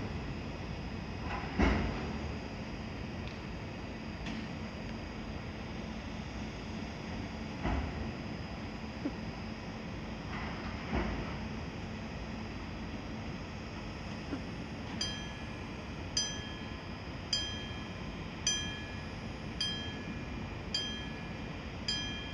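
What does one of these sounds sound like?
A locomotive engine rumbles steadily nearby.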